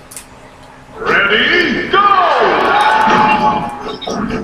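Video game music and effects play loudly from a television speaker.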